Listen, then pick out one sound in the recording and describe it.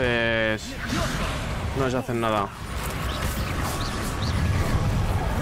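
Magic spells crackle and whoosh in bursts.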